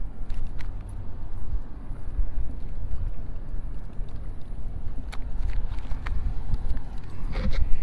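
Small waves lap gently against a stone shore.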